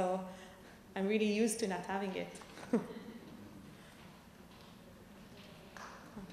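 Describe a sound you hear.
A woman laughs into a microphone.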